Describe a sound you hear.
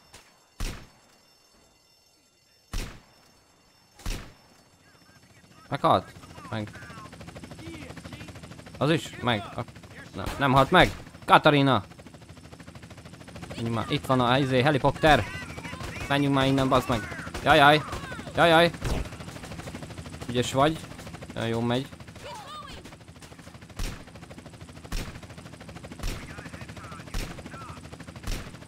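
Shotgun shots boom one at a time.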